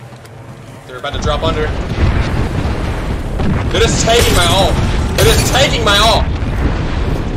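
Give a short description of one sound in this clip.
A young man talks into a headset microphone with animation.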